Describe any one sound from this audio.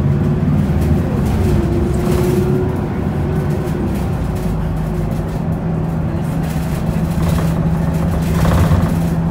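A vehicle's engine hums steadily as it drives along a street.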